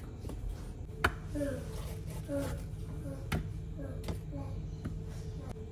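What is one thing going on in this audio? Metal tongs click against a plastic container.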